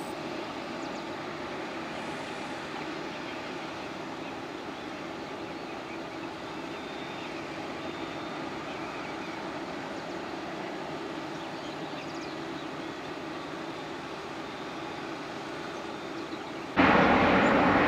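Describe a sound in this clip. A jet airliner hums steadily at a distance.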